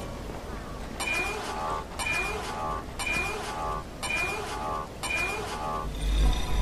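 A warning alarm beeps in a steady, repeating pulse.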